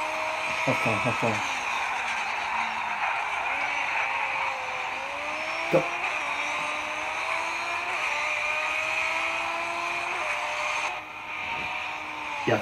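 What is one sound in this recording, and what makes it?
A racing car engine roars steadily, its pitch rising and dropping as it shifts gears.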